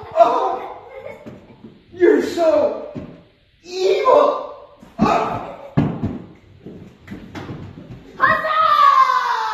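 Young children shout and squeal excitedly in a room with some echo.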